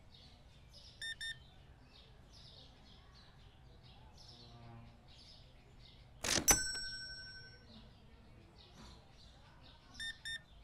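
A card payment terminal beeps in short double tones.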